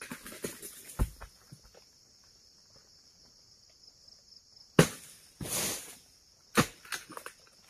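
Heavy palm fronds thud onto the ground.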